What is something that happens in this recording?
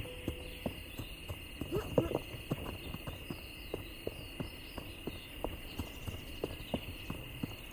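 Quick footsteps patter over dirt.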